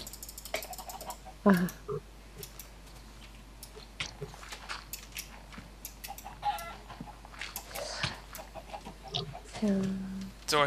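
Chickens cluck softly now and then.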